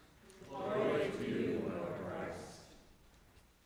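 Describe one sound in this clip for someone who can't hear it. A congregation of men and women speaks a short response together in an echoing room.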